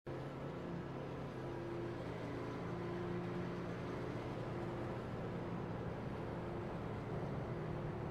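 Race car engines roar steadily as the cars speed around the track.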